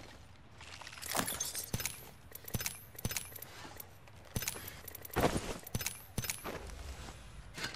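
Game menu items click as they are selected.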